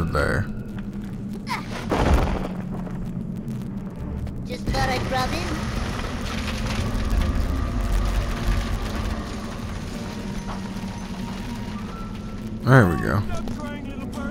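Video game sound effects whoosh and chime.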